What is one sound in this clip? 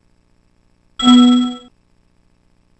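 A short bright chime rings as a book page turns.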